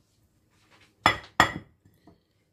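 A glass dish knocks down onto a hard counter.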